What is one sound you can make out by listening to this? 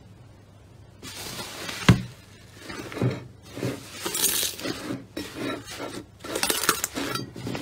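Hands knead glossy slime in a bowl, making sticky squelching crackles.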